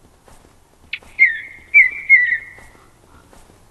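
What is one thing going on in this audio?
A walrus gives a loud, short bellowing call.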